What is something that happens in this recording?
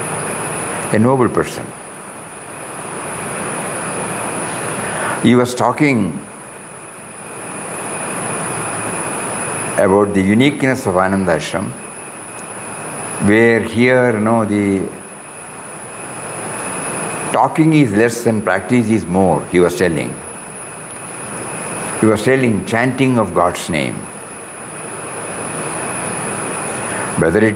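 An elderly man speaks calmly into a microphone in short bursts with long pauses.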